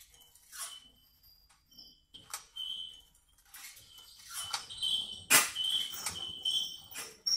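Electronic synthesizer tones chime and swoosh in short bursts.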